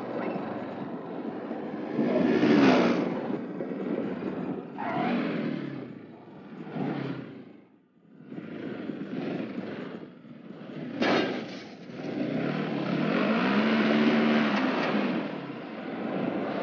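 A small off-road buggy engine revs up and down.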